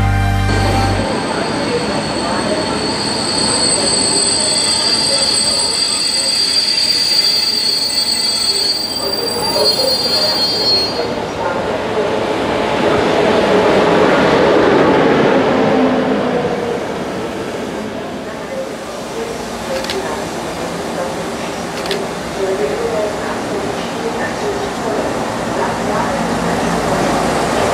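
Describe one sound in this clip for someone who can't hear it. A diesel railcar engine rumbles as the railcar slowly pulls into a station.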